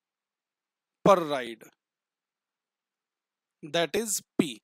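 A man speaks calmly and closely into a clip-on microphone, in short phrases.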